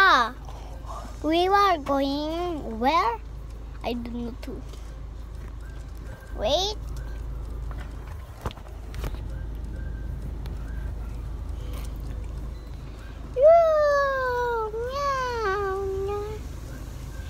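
A young girl speaks close to a phone microphone in a high, animated voice.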